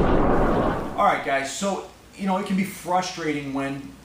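A middle-aged man speaks calmly and clearly into a microphone, close by.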